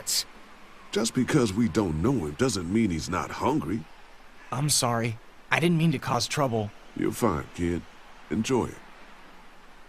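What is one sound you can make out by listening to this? A man answers in a calm, firm voice.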